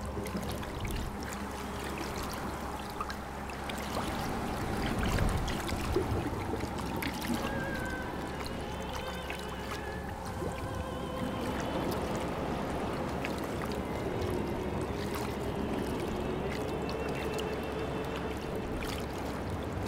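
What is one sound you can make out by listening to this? Water laps gently against stone walls.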